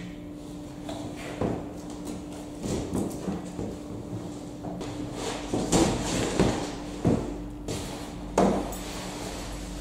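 Cardboard rustles and scrapes as a large box is lifted.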